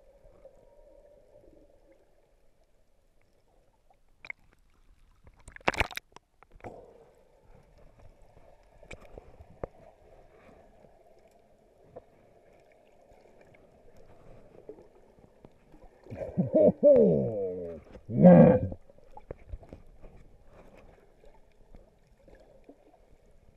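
Water sloshes and hums dully underwater throughout.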